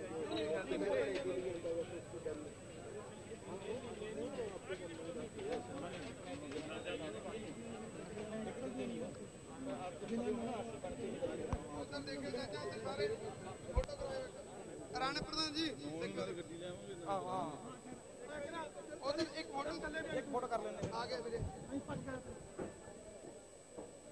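A man announces loudly over a loudspeaker in a large space.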